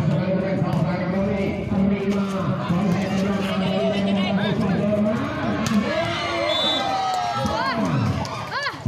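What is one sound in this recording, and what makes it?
A large crowd of spectators chatters and cheers outdoors.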